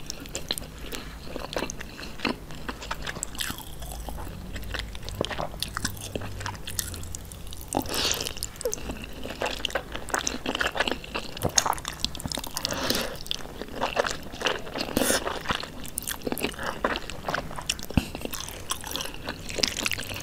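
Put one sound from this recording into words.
Wooden utensils lift and stir sticky noodles with wet squelching sounds, heard up close.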